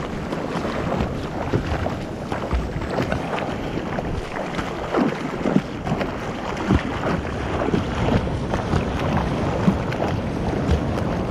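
Water splashes and slaps against a board.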